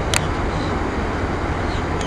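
Ocean waves break and wash onto a beach.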